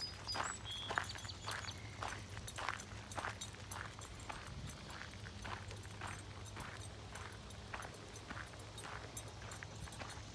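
Footsteps swish steadily along a grassy dirt track outdoors.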